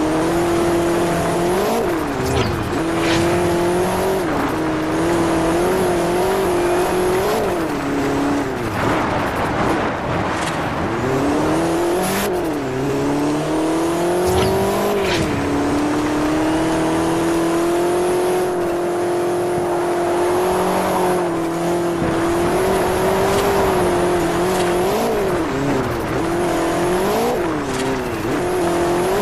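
A car engine revs hard, rising and falling as the gears shift.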